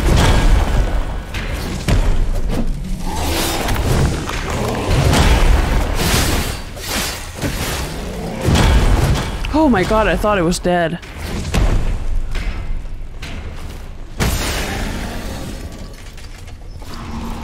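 Heavy weapon blows strike and clang against armour.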